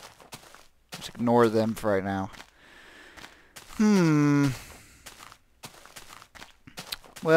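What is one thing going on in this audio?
Footsteps tread softly on grass and earth.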